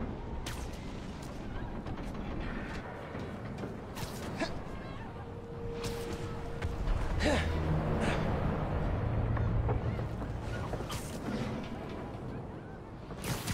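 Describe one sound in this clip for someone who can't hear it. Webs shoot out with sharp swishing thwips.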